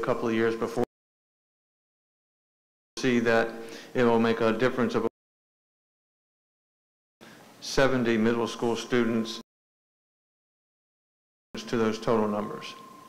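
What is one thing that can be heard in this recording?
A man speaks calmly into a microphone, in short bursts broken by silences.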